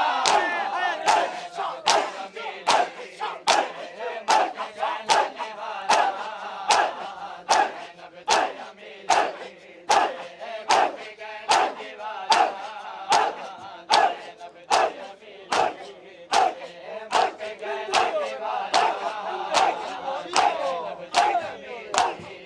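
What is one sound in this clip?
A crowd of men slap their chests in loud, steady beats.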